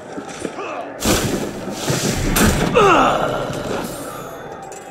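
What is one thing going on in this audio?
Straw rustles as a body is dragged into a hay cart.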